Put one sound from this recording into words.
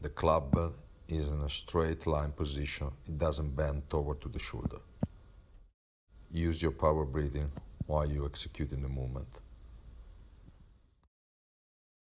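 A man speaks calmly and clearly, close by.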